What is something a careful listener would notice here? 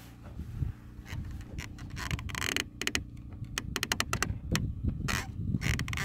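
A clamp ratchets as its handle is squeezed.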